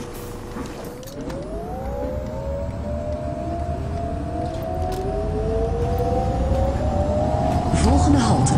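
A bus engine revs up, rising steadily in pitch.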